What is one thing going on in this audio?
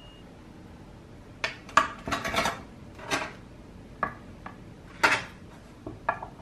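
Metal tongs clink against a metal tray.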